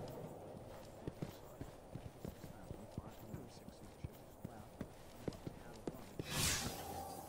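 Footsteps tap quickly on a hard stone floor.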